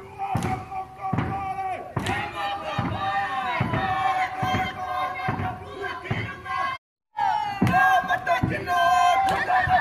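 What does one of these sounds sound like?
A group of performers sings and chants.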